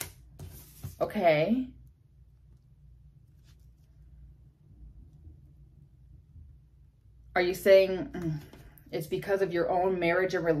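A young woman speaks close to a microphone, with pauses between phrases.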